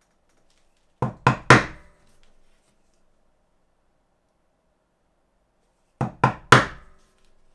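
A mallet strikes a metal punch with sharp, ringing taps in quick bursts.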